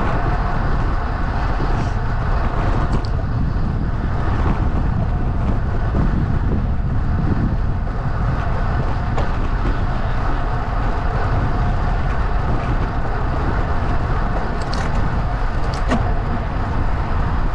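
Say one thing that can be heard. Tyres roll steadily over rough asphalt.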